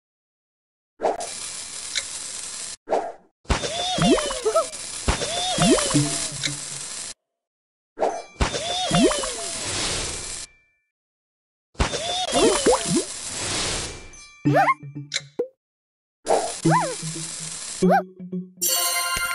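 Game sound effects chime and whoosh as pieces match and burst.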